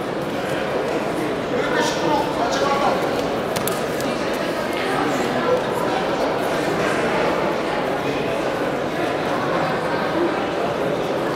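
Wrestlers' shoes scuff and thud on a mat.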